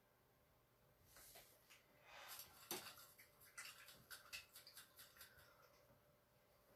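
A paintbrush swishes and clinks in a glass jar of water.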